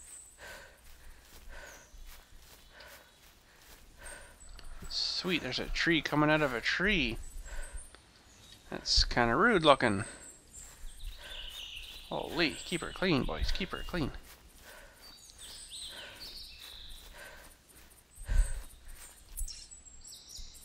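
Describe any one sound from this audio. Footsteps crunch steadily through undergrowth.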